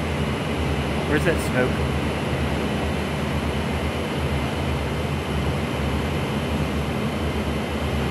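A propeller plane's engine drones steadily and loudly.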